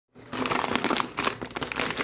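Scissors snip through a plastic snack bag.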